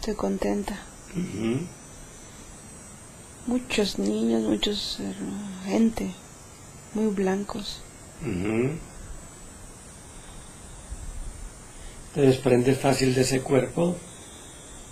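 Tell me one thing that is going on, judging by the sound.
A young woman speaks slowly and softly, close by.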